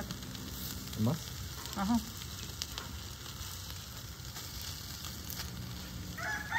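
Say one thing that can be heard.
Metal tongs clink against a stove grate.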